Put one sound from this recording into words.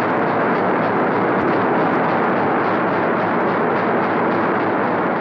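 Heavy machinery roars and hums steadily.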